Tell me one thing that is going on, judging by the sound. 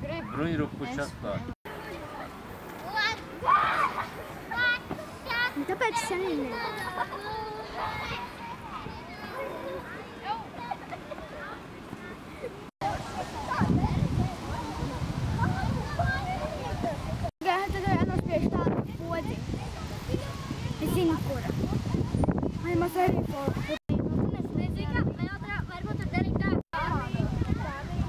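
Children talk and shout excitedly outdoors.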